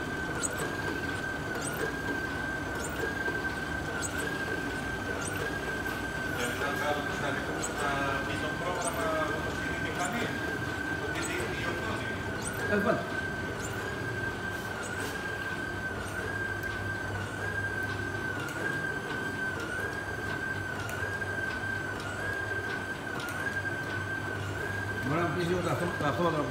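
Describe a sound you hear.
A printing press runs with a steady whine.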